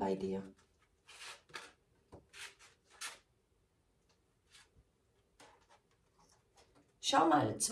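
Playing cards slide and tap softly on a cloth.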